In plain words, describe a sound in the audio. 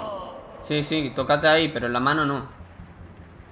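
A man speaks in a strained, pained voice close by.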